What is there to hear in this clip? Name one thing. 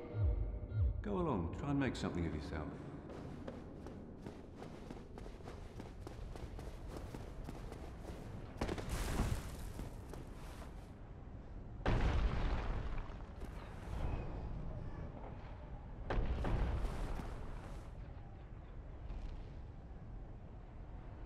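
Armoured footsteps run quickly on stone.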